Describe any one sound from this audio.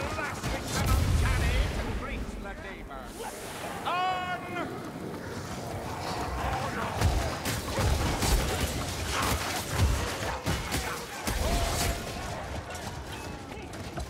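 Creatures snarl and shriek in combat.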